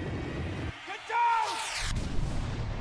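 A man shouts a sudden warning.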